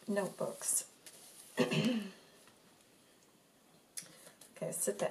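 Stiff paper pages rustle and flap as they are turned by hand.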